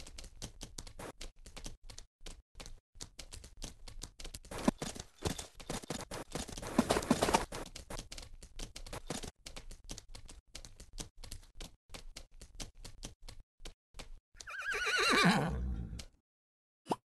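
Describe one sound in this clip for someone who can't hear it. Horse hooves clop on the ground.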